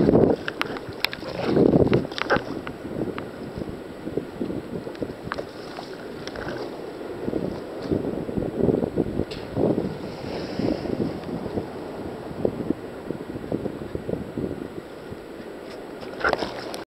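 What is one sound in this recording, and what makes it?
Waves splash and churn close by.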